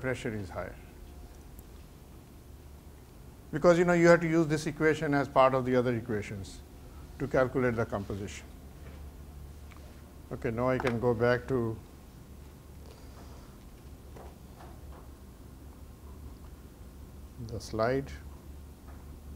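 A middle-aged man speaks calmly through a microphone in a large room, pausing often.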